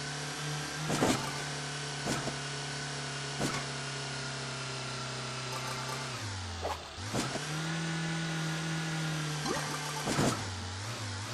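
Wheels thump as a small car lands on a bumpy track.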